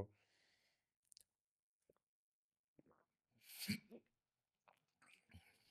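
A man sips and swallows a drink.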